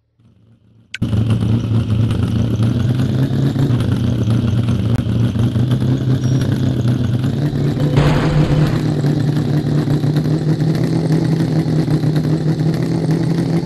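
A truck engine rumbles steadily while driving off-road.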